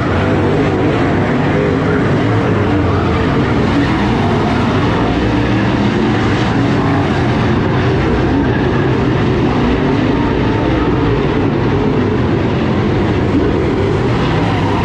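Race car engines roar loudly as they circle a dirt track.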